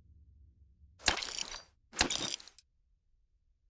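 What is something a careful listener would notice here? A game menu plays two short swishing selection sounds.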